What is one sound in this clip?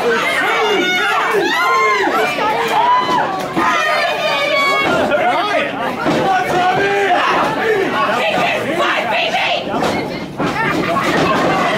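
A crowd of men and women shouts and cheers loudly in an echoing hall.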